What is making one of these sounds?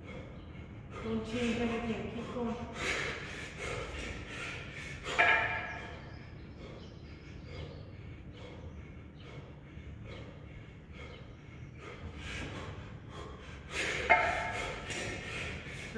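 A man talks nearby between breaths.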